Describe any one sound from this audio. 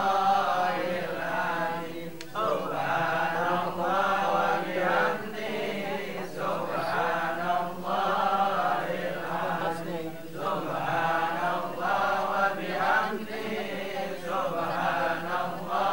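A man speaks softly and calmly, close by.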